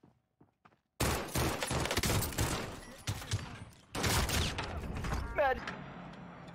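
Gunshots fire in rapid, loud bursts.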